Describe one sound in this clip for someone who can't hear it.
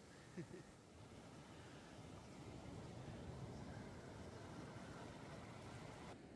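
Water splashes around a paddling surfer.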